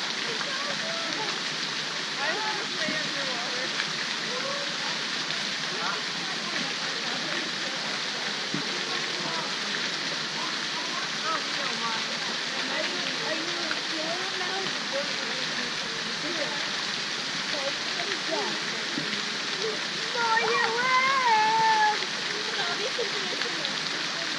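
Children talk and call out while playing in water.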